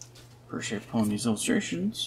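Cards rustle as they are shuffled.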